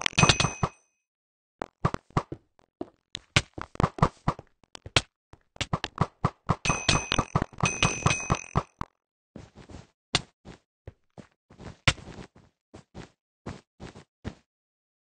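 Blocks are placed with quick soft taps and thuds.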